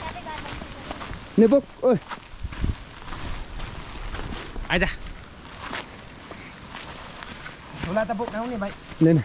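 Footsteps crunch on a dirt track.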